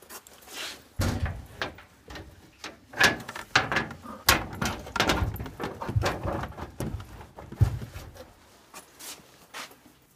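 Fabric and plastic rustle as things are handled close by.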